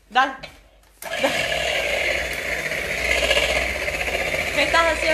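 An electric hand mixer whirs steadily, beating eggs.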